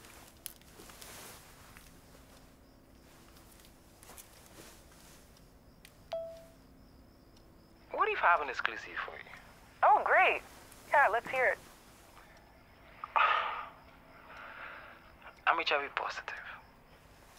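Phone keys click softly under a thumb.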